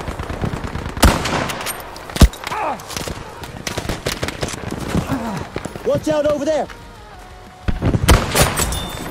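Rifle shots ring out with sharp, loud bangs a few times.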